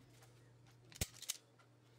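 A wire stripper clicks sharply.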